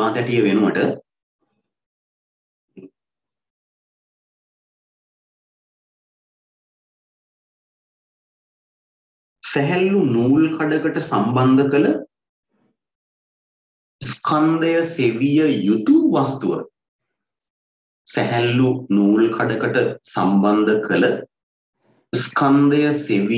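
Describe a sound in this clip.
A young man speaks calmly and close to a microphone, with pauses.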